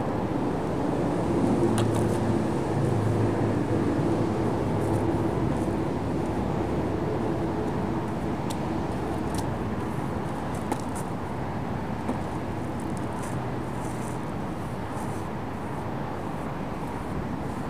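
A paintbrush scrapes against a wall.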